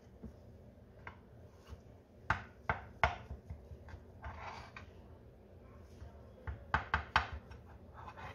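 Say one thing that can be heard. A spatula taps and scrapes against a glass baking dish.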